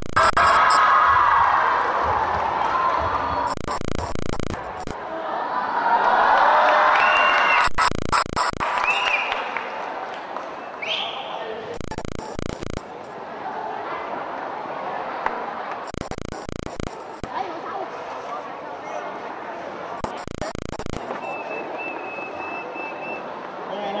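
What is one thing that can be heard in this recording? A young woman speaks through a microphone in a large echoing hall.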